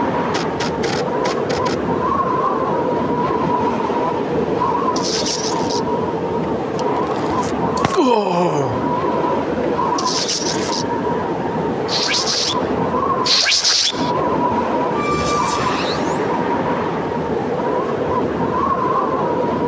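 Footsteps crunch on snow at a running pace.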